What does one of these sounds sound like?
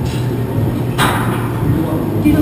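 Weight plates on a barbell clank softly.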